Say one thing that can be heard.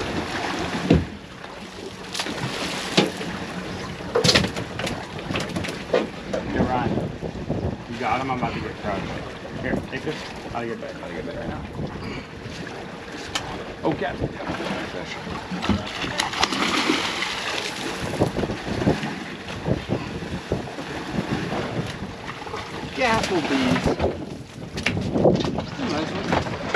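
Young men talk and call out with excitement nearby.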